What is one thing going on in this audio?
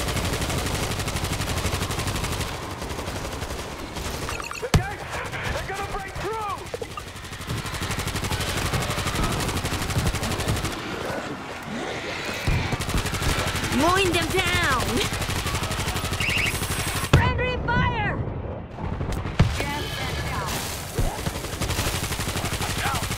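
Automatic rifle fire rattles in rapid bursts.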